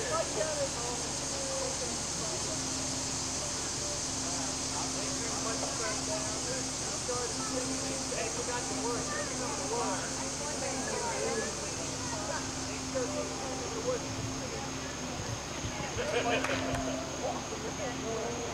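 A crowd of men, women and children chatter and laugh outdoors.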